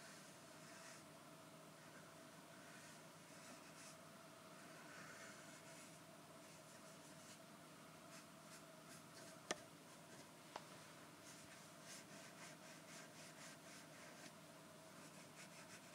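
Soft brushing and rustling sounds close to a microphone, in short repeated strokes.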